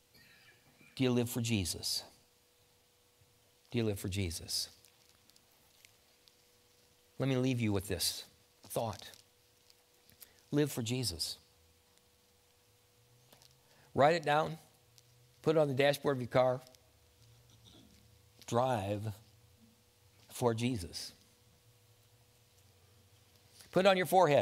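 An elderly man speaks calmly in short phrases through a microphone.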